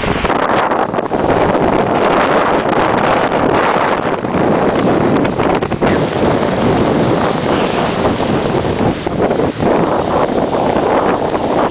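Heavy waves crash against a sea wall.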